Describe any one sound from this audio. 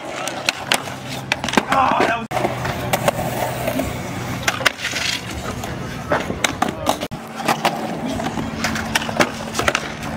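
A skateboard clacks sharply against concrete.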